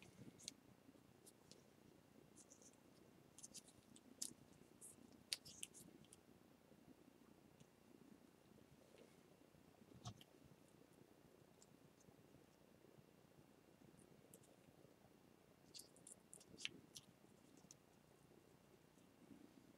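Small metal pieces click and tick between gloved fingers.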